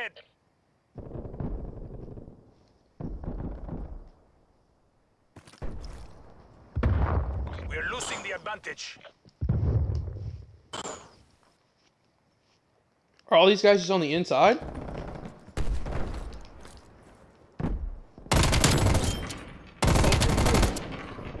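Bursts of heavy gunfire ring out, each fading with a short echo.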